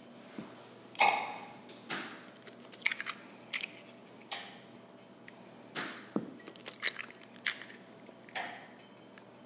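Eggs crack sharply against a bowl's rim, one after another.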